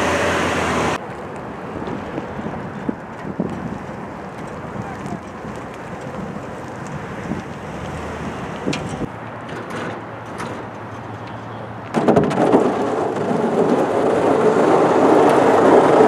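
A pickup truck drives slowly past.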